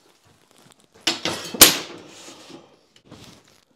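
A utility knife scores a drywall board.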